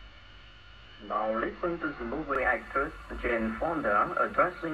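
A young woman speaks casually into a close microphone.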